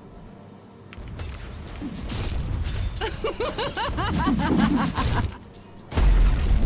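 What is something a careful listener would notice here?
Magic blasts whoosh and crash in a game battle.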